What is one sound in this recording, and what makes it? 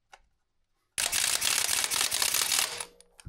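A cordless impact tool whirs and rattles loudly.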